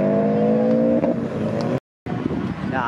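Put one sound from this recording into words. A car engine roars as it accelerates past.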